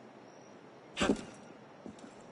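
A body lands with a heavy thud.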